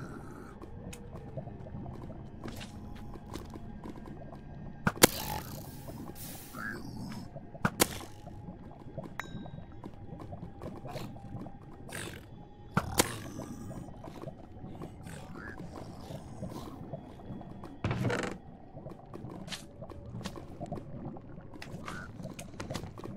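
Lava bubbles and pops.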